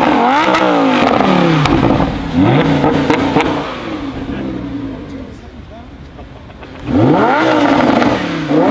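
A sports car engine revs loudly in sharp bursts, rising and falling in pitch.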